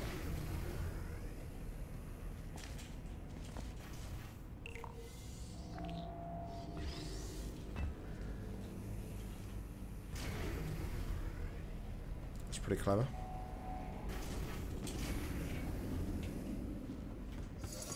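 A laser hums steadily.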